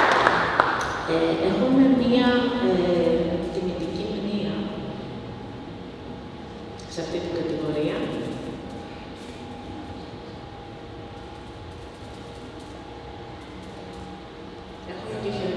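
A woman speaks calmly into a microphone over loudspeakers.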